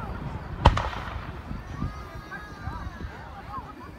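A firework rocket whistles as it rises.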